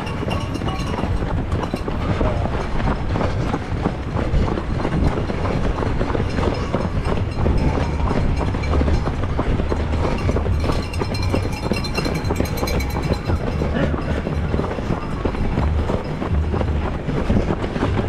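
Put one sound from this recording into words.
Wind buffets a microphone outdoors.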